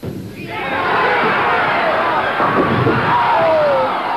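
Bowling pins crash as a ball strikes them.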